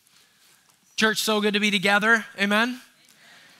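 A man speaks clearly through a headset microphone.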